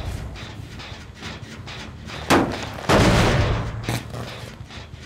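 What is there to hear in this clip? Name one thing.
A generator clanks and rattles as it is damaged.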